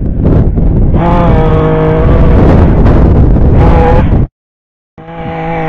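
A chainsaw engine runs loudly at high speed.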